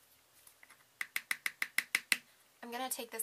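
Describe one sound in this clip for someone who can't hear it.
A plastic spoon taps rapidly against a plastic cup.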